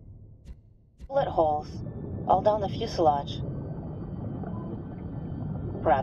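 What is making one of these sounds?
Air bubbles gurgle underwater.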